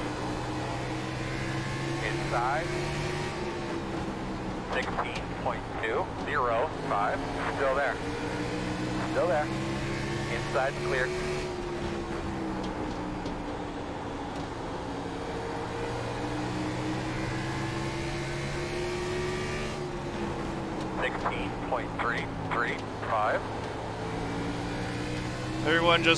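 A race car engine drones steadily, rising and falling in pitch.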